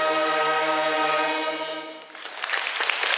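A brass band plays a loud held closing chord in a large hall.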